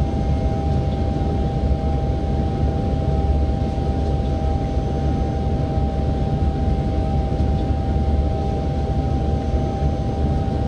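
A train rumbles steadily along the tracks with a low, constant drone.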